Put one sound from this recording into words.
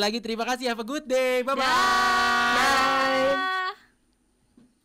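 A young woman calls out a cheerful goodbye over an online call.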